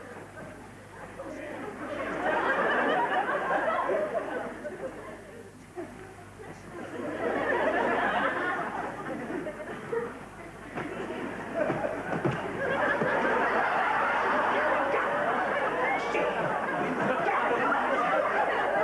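Bedding rustles and thrashes as people struggle under a duvet.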